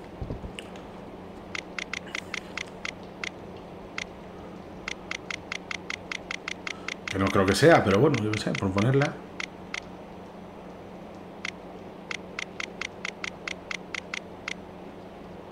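A combination dial clicks rapidly as it turns.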